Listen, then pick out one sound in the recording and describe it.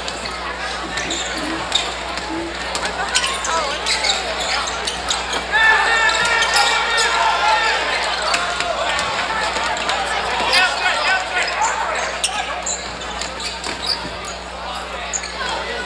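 A crowd cheers and shouts throughout a large echoing gym.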